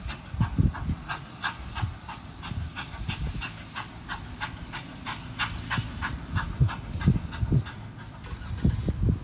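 A steam locomotive chuffs as it pulls away.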